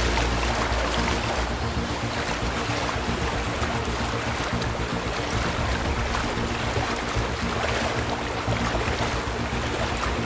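Water splashes steadily as a swimmer paddles through it.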